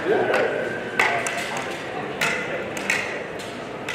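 Practice swords knock sharply against each other.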